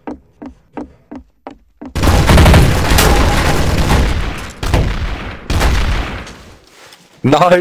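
Rapid gunshots crack and echo.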